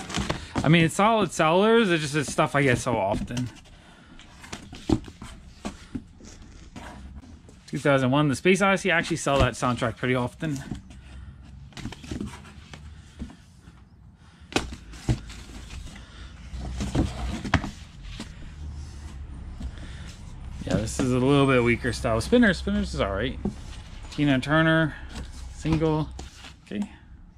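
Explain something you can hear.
Cardboard record sleeves slide and tap against each other as they are flipped through.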